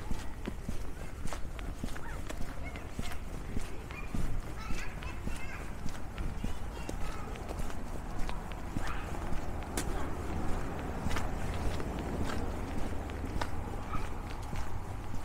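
Footsteps crunch steadily on a gritty pavement.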